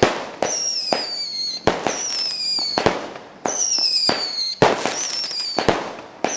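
Fireworks whistle with falling screeches.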